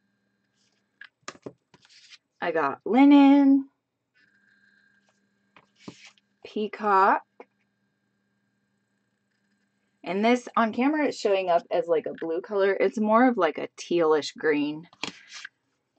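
Small plastic cases tap and click as they are handled.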